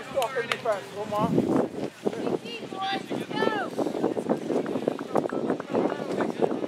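Adult spectators chatter and call out close by, outdoors.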